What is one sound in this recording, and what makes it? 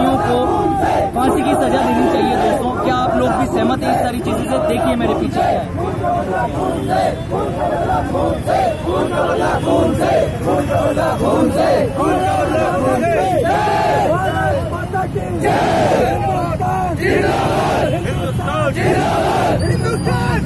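A crowd chants and shouts loudly outdoors.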